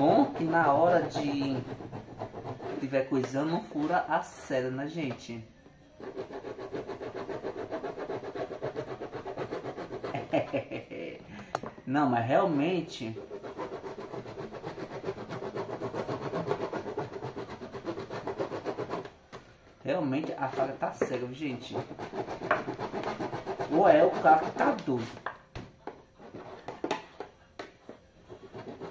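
A knife saws and scrapes through hard plastic.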